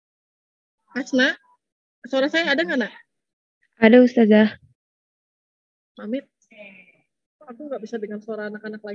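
A woman speaks through an online call microphone, with pauses.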